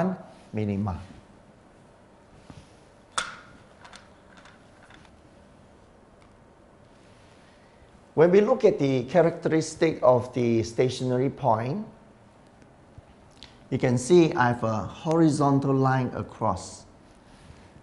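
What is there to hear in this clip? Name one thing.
A man speaks clearly and calmly into a close microphone, explaining in a lecturing tone.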